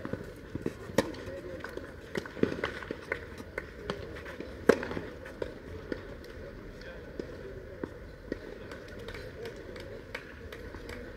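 Tennis balls are struck with rackets in a rally.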